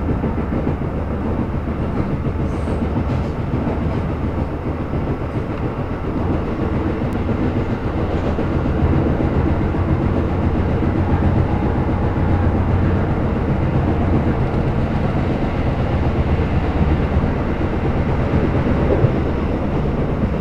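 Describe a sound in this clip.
A train car rumbles steadily as it rolls along.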